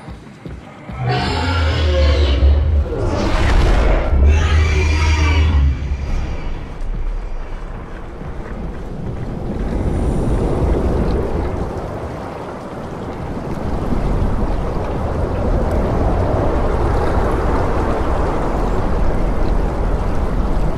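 Wind rumbles and gusts outdoors.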